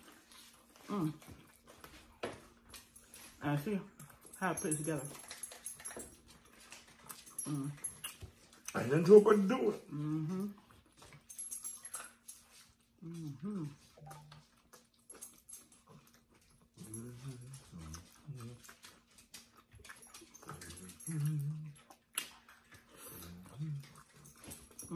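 Food crunches and smacks while being chewed close by.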